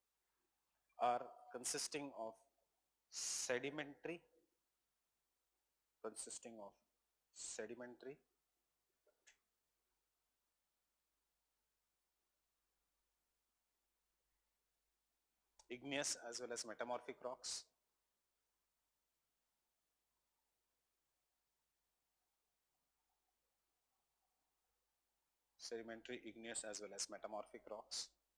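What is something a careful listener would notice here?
A middle-aged man speaks calmly into a close microphone, in short bursts with long pauses.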